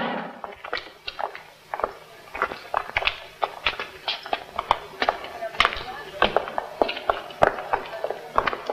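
Footsteps tap on a stone courtyard.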